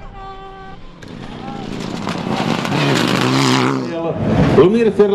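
A rally car engine roars closer and louder.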